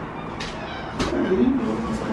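A man speaks nearby.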